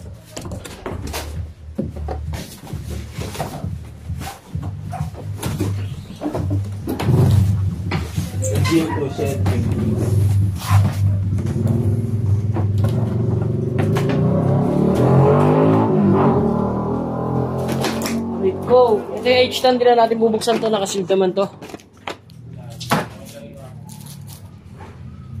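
A cardboard box scrapes and thumps as it is handled.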